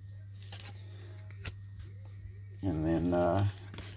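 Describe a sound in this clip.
A trading card is set down on a table with a soft tap.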